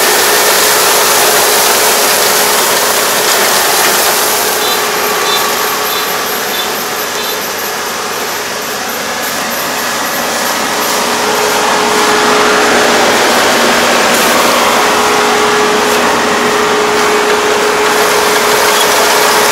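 A combine harvester engine drones steadily close by.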